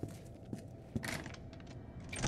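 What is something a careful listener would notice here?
A metal door latch slides open with a clack.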